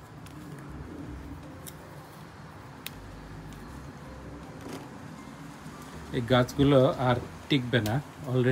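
Leaves rustle softly as hands handle a plant.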